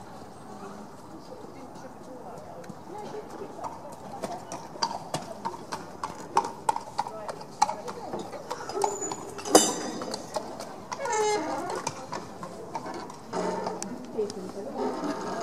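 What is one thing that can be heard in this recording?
A horse's hooves thud softly on a sand floor in a large echoing hall.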